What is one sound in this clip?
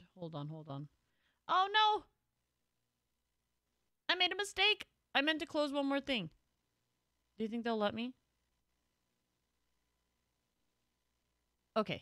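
A young woman speaks with animation through a microphone, in short bursts with pauses.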